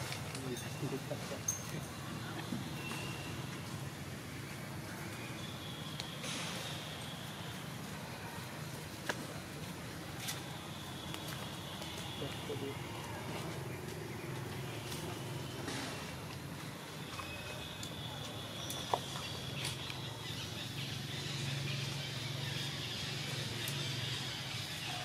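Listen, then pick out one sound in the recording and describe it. Dry leaves rustle and twigs crackle nearby.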